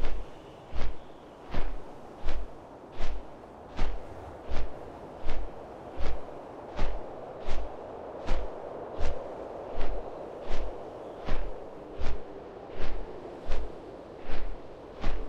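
Large wings flap in a steady, even rhythm.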